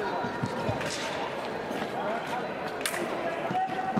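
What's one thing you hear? Fencing blades click against each other.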